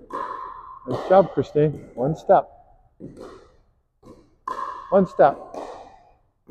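Paddles pop against a plastic ball in a quick rally.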